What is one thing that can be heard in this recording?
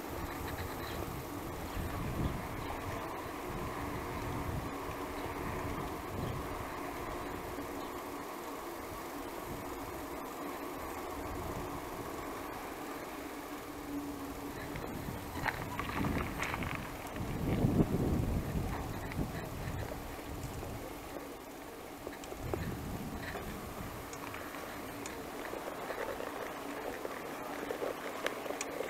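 Bicycle tyres hum steadily on asphalt.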